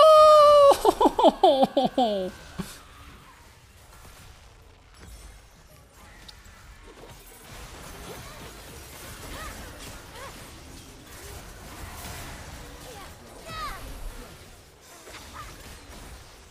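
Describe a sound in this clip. Game sound effects chime and clash.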